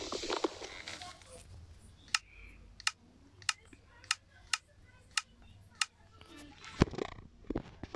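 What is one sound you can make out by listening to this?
Short soft clicks tap in quick succession.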